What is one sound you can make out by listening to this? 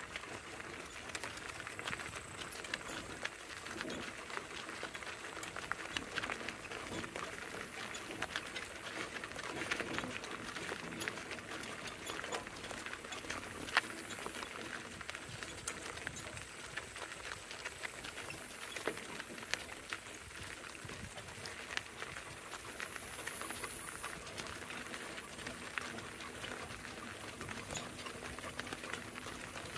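Cart wheels crunch and rattle over gravel.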